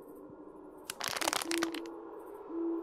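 Firewood logs clatter as they are picked up.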